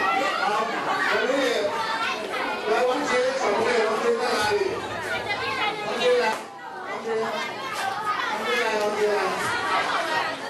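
A crowd of adults and children chatters in an echoing hall.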